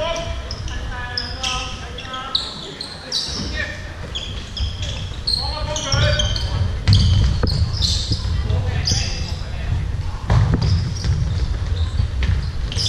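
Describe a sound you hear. Sneakers squeak sharply on a court floor in a large echoing hall.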